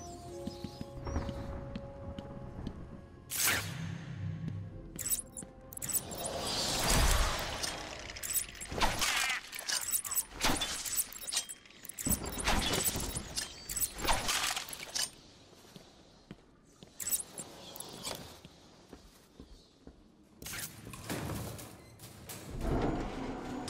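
Boots step steadily on a hard tiled floor.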